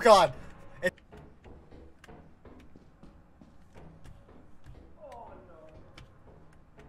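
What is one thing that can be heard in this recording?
Footsteps clank softly on a metal walkway.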